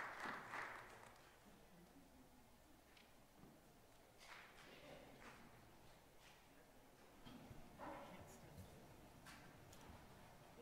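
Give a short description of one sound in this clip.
A crowd of people murmurs quietly.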